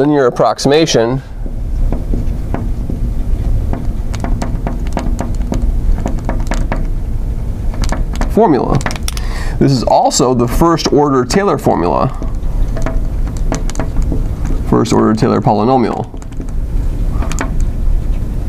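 A man speaks calmly close to a microphone, explaining.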